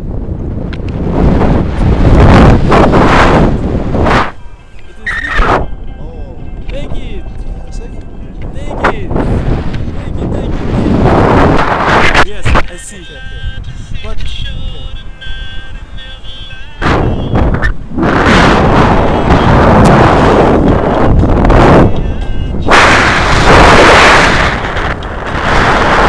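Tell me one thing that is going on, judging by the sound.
Wind rushes and buffets loudly against a microphone outdoors.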